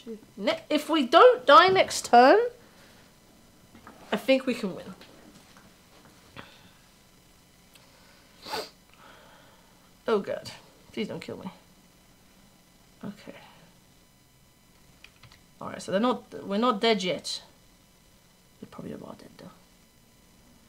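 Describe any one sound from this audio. A young woman talks in bursts into a close microphone, pausing between phrases.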